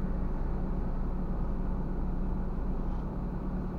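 A car passes close by on the right.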